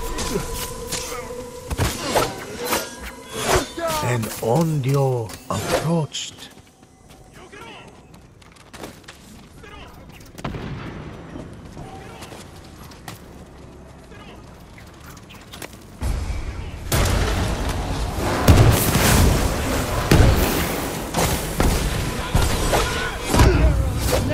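Swords clash and slash with sharp metallic hits.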